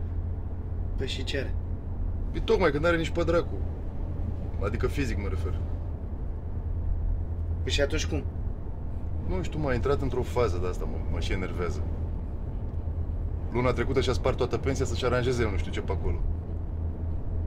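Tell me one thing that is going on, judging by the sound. A second man answers calmly inside a car.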